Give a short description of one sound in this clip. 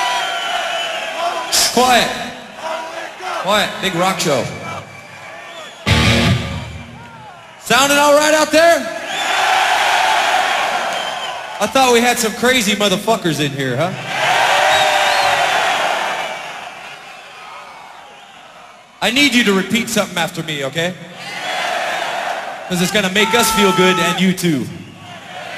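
A man talks loudly into a microphone, heard through loudspeakers in a large echoing hall.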